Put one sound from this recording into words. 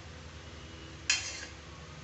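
Oil pours in a thin stream into a metal pan.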